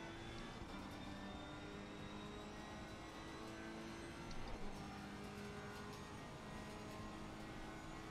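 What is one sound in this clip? A racing car engine drones steadily, its pitch stepping up and down with gear changes.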